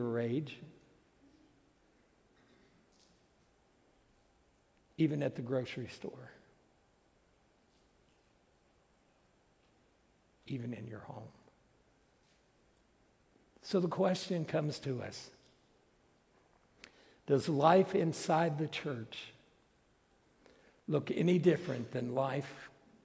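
A middle-aged man speaks slowly and deliberately through a microphone, with long pauses, in a large echoing hall.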